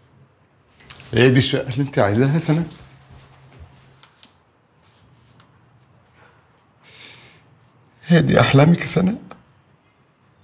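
An elderly man speaks forcefully, close by.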